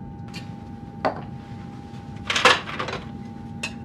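Ice clinks in a glass jug.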